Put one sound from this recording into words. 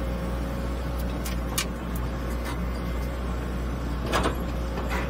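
Clumps of earth thud into a dumper's steel skip.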